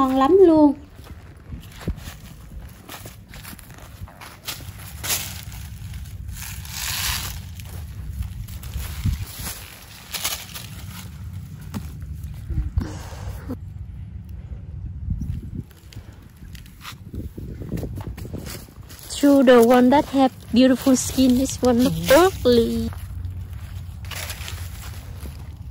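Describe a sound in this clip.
Footsteps crunch on dry leaves and soil.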